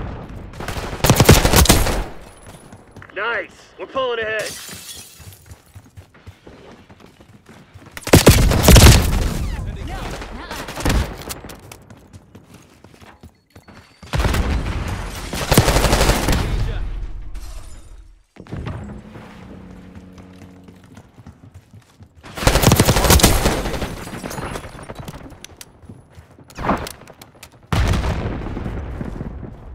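Rapid gunfire bursts out in loud, echoing volleys.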